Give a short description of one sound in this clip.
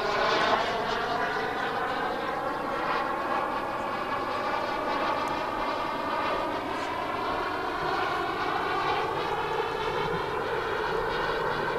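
A jet aircraft roars steadily overhead, its pitch slowly falling.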